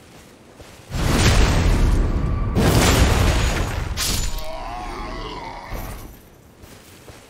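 A blade swings and strikes with heavy thuds.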